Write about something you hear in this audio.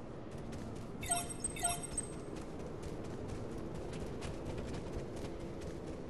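Magic blasts crackle and boom during a fight.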